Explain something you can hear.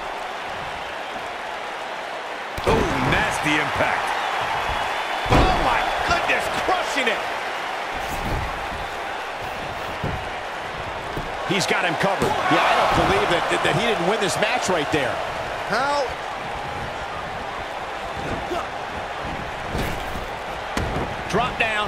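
A crowd cheers and murmurs in a large arena.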